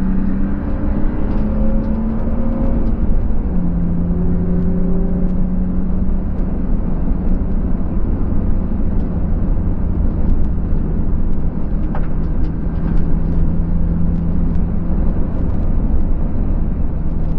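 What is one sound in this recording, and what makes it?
Wind and road noise rumble around the car.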